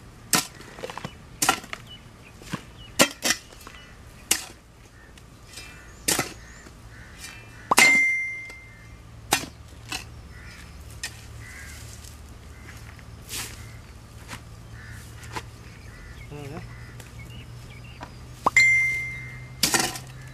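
Metal tools strike and scrape into hard soil.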